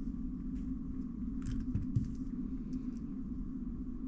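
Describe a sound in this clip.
Plastic puzzle cubes click and clatter as they are picked up and set down.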